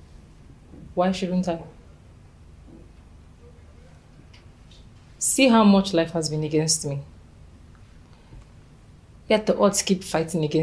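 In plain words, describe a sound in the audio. A young woman speaks firmly nearby.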